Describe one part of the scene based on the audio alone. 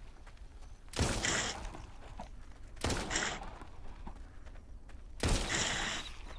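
Gunshots boom loudly, each followed by a short ringing clatter.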